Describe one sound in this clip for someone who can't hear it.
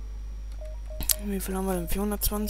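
Game menu selections click with soft electronic tones.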